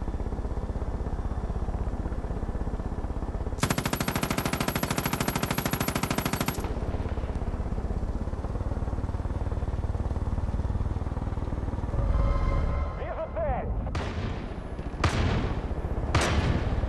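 A small helicopter engine drones and its rotor thuds steadily.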